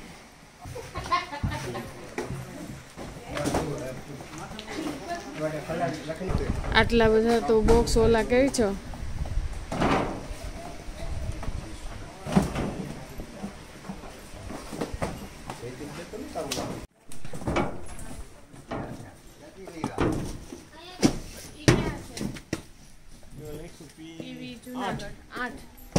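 Cardboard boxes thump and scrape as they are stacked.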